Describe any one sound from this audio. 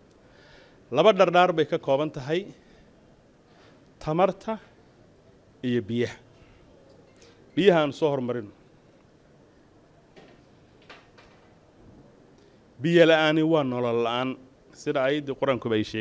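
A man speaks into a microphone in measured bursts with pauses.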